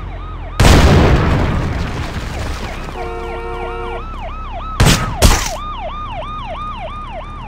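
A police siren wails up and down steadily.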